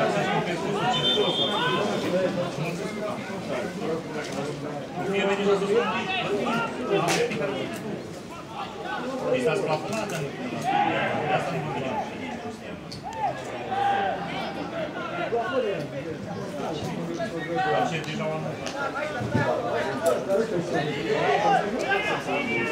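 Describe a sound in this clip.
A crowd in a stadium cheers and chants steadily outdoors.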